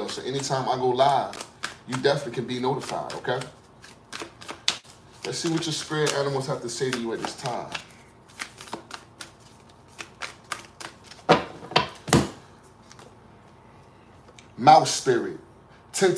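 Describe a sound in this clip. Playing cards riffle and flick softly as they are shuffled by hand.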